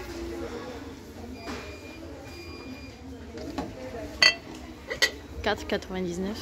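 A ceramic ornament clinks on a shelf.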